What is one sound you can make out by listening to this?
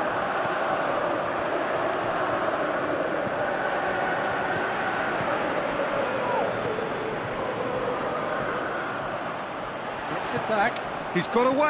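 A stadium crowd roars and chants steadily throughout.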